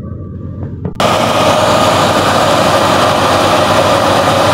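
A threshing machine roars loudly and steadily.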